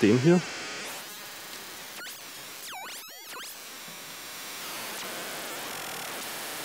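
A modular synthesizer plays bleeps and sweeping electronic tones.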